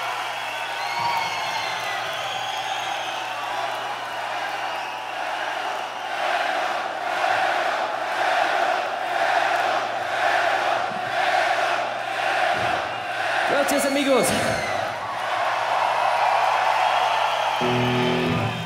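A large crowd cheers and shouts loudly.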